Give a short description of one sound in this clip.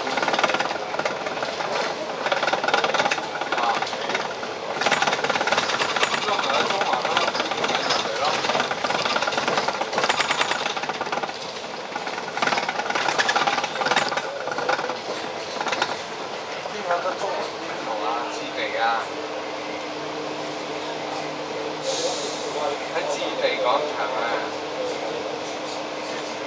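A bus engine rumbles steadily while riding along a city street.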